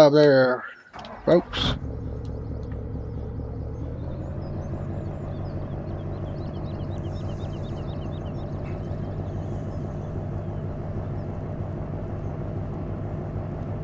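A truck engine hums steadily as the truck drives.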